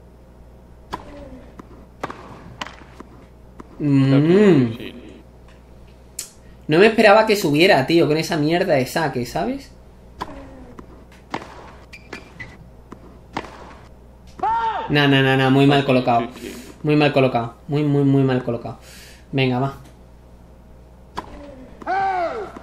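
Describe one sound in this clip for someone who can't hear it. A tennis ball is hit back and forth with sharp thwacks.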